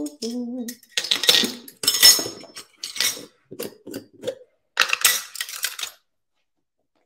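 A spice jar rattles as it is shaken.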